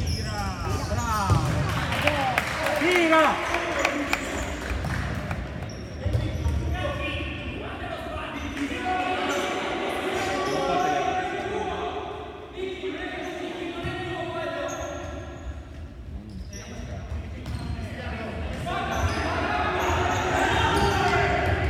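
A ball thuds as players kick it across the floor.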